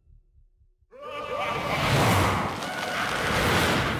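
A huge fiery explosion roars loudly.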